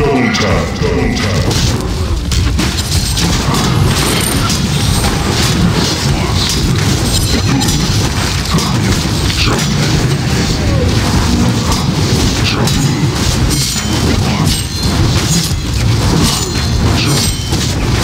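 Spells and weapons clash and crackle in a fast fight.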